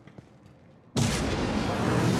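A crackling surge of energy bursts out loudly and hisses on.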